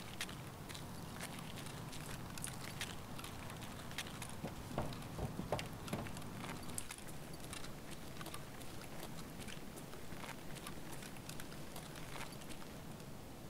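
Footsteps crunch on a gritty floor.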